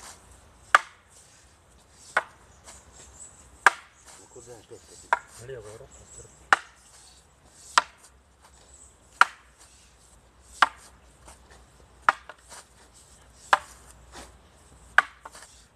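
Wooden staffs clack together sharply at a steady pace.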